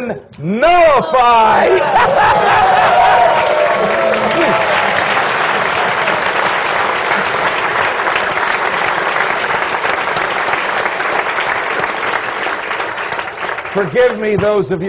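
A large crowd applauds loudly and steadily.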